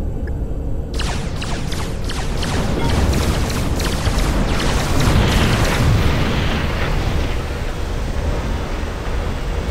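Rapid laser shots and blasts crackle in a busy battle.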